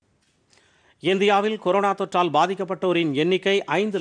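A man reads out the news calmly through a microphone.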